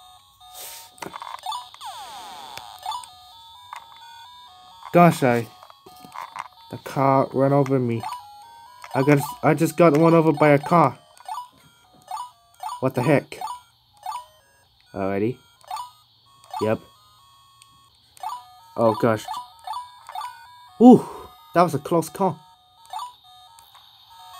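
A small arcade game plays electronic beeps and tunes.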